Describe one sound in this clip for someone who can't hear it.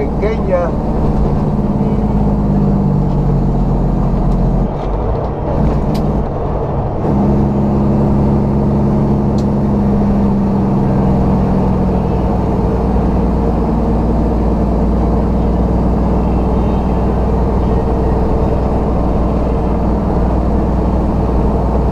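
A truck engine hums steadily and loudly from inside the cab.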